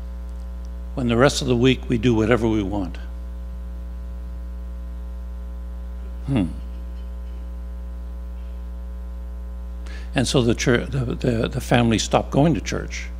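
An older man speaks calmly into a microphone through a loudspeaker.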